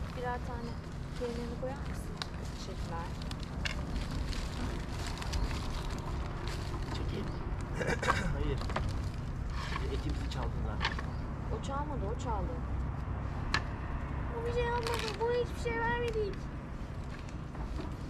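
A man and a woman talk calmly nearby outdoors.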